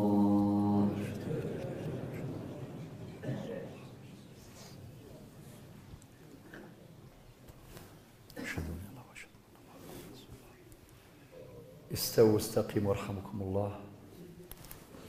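A large group of men murmur together in an echoing hall.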